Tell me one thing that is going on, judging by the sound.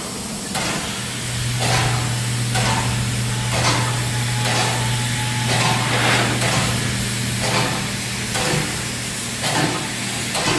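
A steam locomotive hums with a steady low drone.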